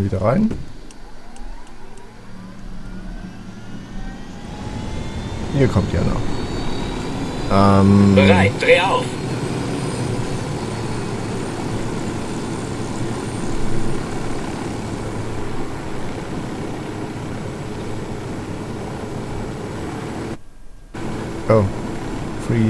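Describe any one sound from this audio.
A helicopter's rotor whirs steadily as the helicopter flies.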